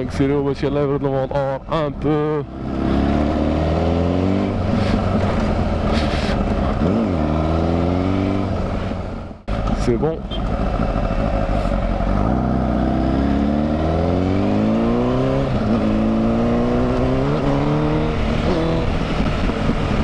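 A motorcycle engine revs up and down as the bike accelerates and shifts gears.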